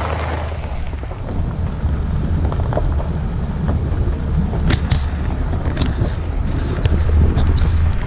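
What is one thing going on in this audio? A vehicle engine hums steadily as it drives.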